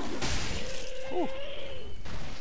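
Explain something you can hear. A monster lets out a screech.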